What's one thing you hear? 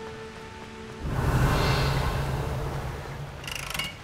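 A magical whoosh swells up and fades.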